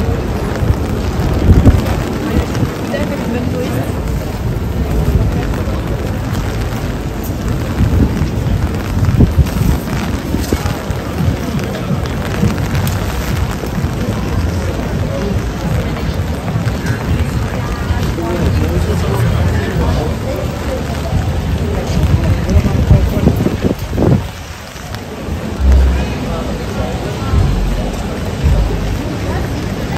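Footsteps shuffle on wet pavement outdoors.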